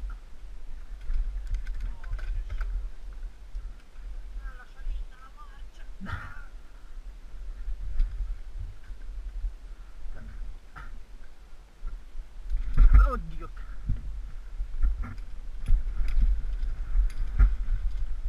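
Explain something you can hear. Bicycle tyres rattle and bump over a rough dirt trail.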